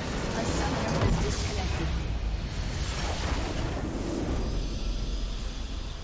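A large crystal shatters and crumbles with a deep, booming rumble.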